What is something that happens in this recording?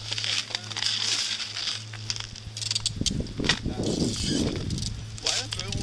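Skis scrape on snow.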